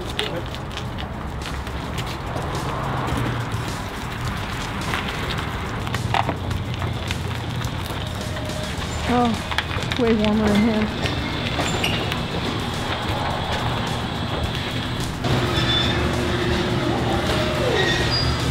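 Truck tyres roll slowly over concrete.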